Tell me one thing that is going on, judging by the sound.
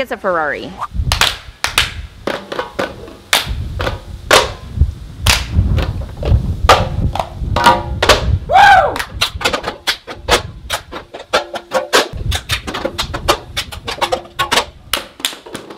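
Children and adults clap their hands in a quick rhythm.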